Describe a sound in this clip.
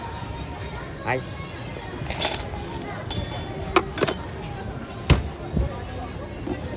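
Ice cubes clatter as a scoop digs into them and tips them into a plastic cup.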